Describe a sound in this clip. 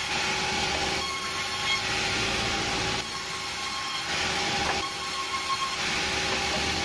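A band saw blade cuts through a plank of wood.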